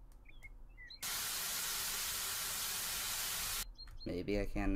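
A hose sprays water in a steady hiss.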